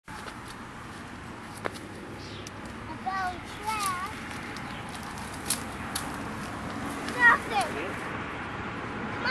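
Leaves and branches rustle as people push through bushes.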